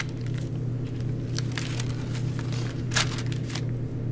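A stiff paper page is turned with a brief rustle.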